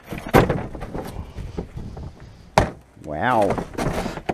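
A plastic bin lid thumps open.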